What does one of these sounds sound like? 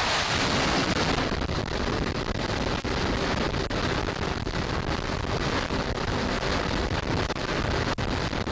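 Steam hisses steadily from a deck catapult.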